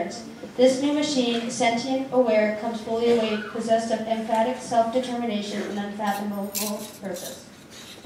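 A young woman speaks calmly through a microphone in a large hall.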